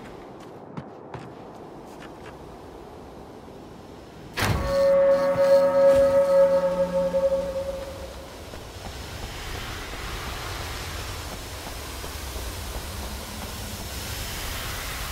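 Footsteps run across wooden planks.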